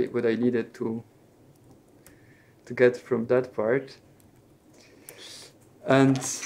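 A laptop keyboard clicks as a man types.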